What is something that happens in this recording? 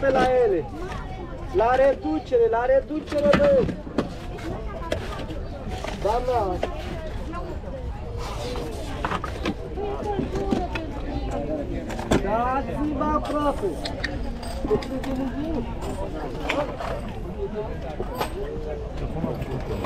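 Men and women chatter nearby in a busy outdoor crowd.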